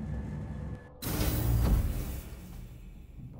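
Heavy metal doors slide open with a loud hiss.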